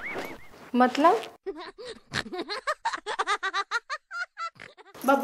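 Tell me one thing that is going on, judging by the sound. An older woman speaks calmly close by.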